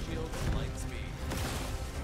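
A loud magical blast whooshes and crackles.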